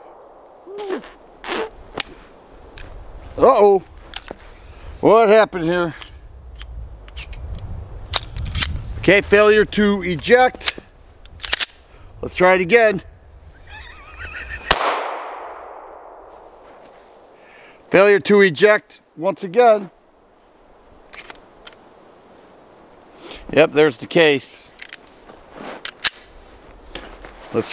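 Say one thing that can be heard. A pistol's slide and parts click and clack sharply.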